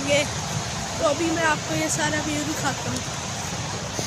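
A boy talks with animation close to a phone microphone.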